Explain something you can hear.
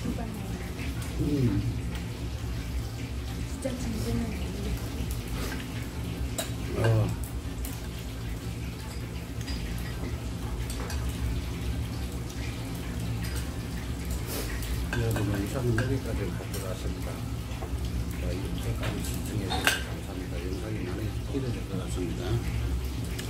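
An elderly man talks casually nearby.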